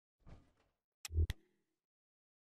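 A heavy door clicks and swings open.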